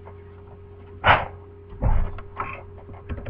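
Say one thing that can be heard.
A chair creaks and thumps as a man sits down.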